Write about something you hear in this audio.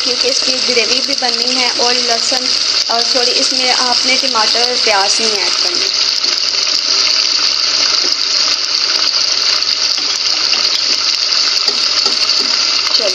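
Meat sizzles and crackles steadily in hot oil.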